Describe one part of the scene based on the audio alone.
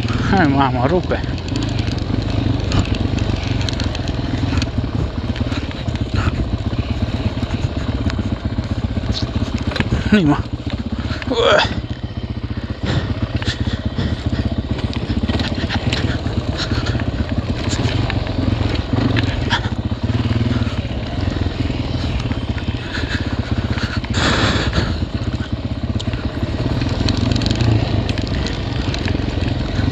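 A quad bike engine hums steadily up close.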